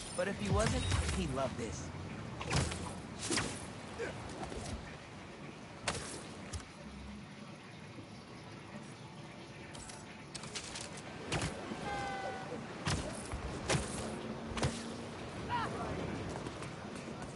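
Whooshing swings and rushing air sweep past in quick bursts.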